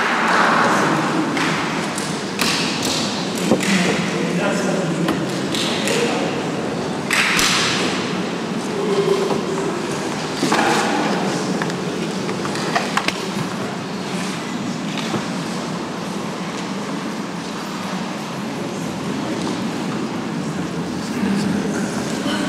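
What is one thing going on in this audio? An elderly man speaks softly close by.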